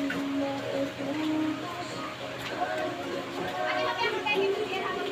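A homemade wooden instrument plays a lively tune of short ringing notes.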